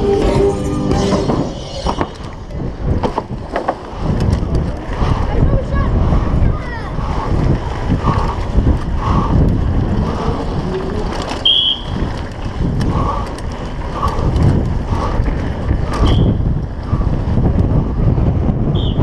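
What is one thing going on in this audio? Bicycle tyres rattle and clatter over rough stone paving.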